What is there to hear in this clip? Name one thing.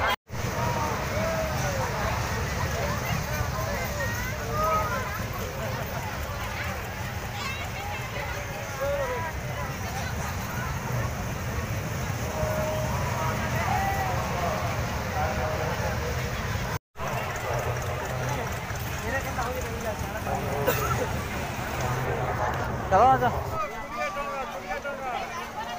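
A crowd of people chatters outdoors at night.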